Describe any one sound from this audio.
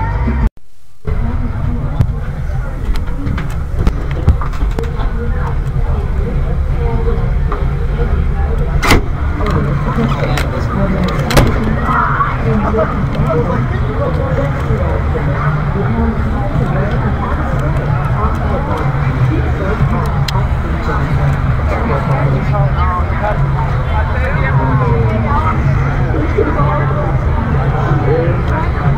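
A crowd of men and women chatters outdoors, with many voices at once.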